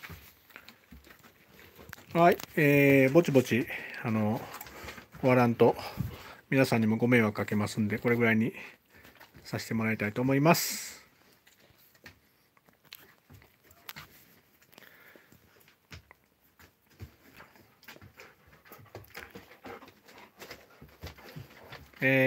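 Dogs' claws click on a hard floor as the dogs walk around.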